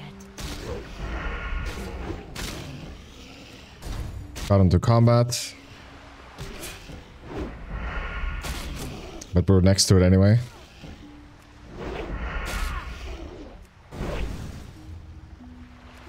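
Blows strike a creature again and again.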